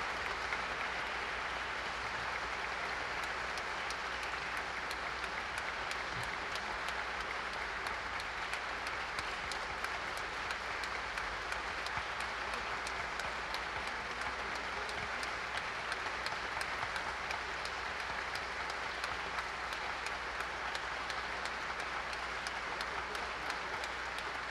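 A crowd applauds steadily in a large room.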